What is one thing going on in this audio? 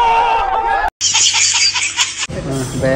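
A baby squeals with laughter.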